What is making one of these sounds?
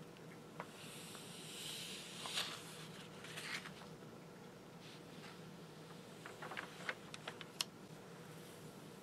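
A glossy magazine page is turned with a papery rustle.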